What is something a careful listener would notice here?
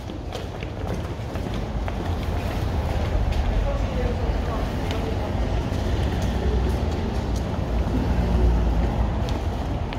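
Many shoes march on stone paving.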